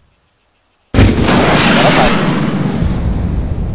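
A distant explosion booms and rumbles.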